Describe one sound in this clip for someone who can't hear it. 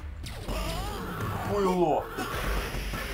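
A fireball whooshes and explodes.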